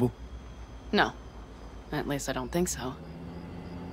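A young woman speaks calmly, close by.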